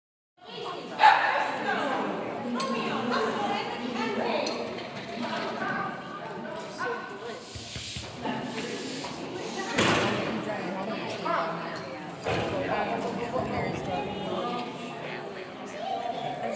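A woman calls out commands to a dog with animation.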